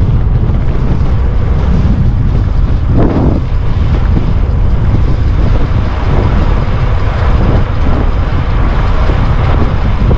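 Strong wind rumbles and buffets loudly throughout.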